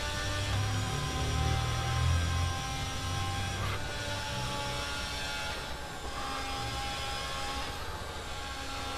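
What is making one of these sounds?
A racing car engine screams at high revs and shifts gears.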